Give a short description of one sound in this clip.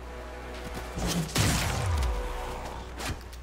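A blade whooshes through the air.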